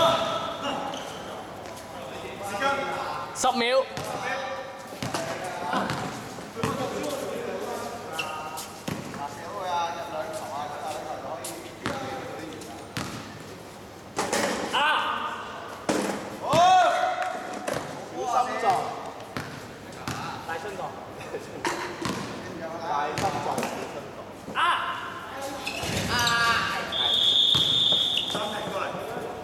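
Young men shout and call to each other on an outdoor court.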